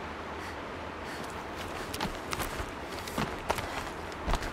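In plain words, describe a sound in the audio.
Hands and feet scrape and thud against rock while climbing.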